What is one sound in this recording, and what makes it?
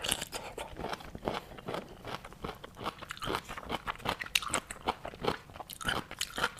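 A young woman chews loudly and wetly close to a microphone.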